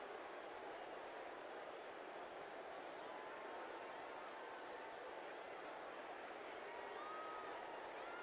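A large stadium crowd murmurs and cheers in the distance.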